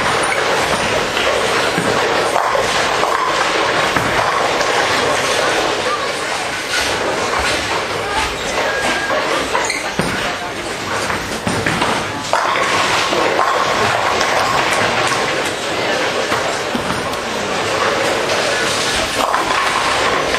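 A bowling ball rumbles down a wooden lane.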